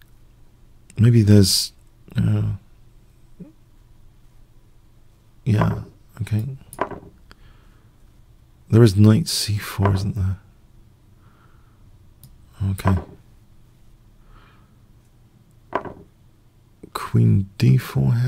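A middle-aged man talks with animation into a close microphone, in short bursts.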